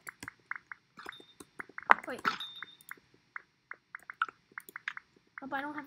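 Short soft beeps sound as menu items are selected in a game.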